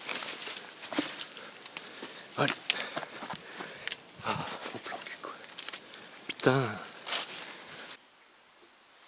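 Leaves and branches rustle and scrape loudly close by.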